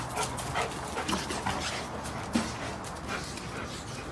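A dog's paws patter quickly across the ground.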